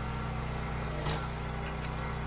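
A log splits with a sharp crack.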